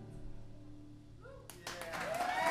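Acoustic guitars ring out as notes are strummed.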